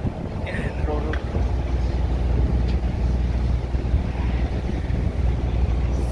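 A man speaks casually close by.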